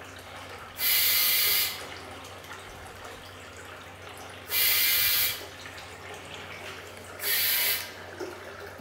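Water gushes from a hose into a bucket in short bursts.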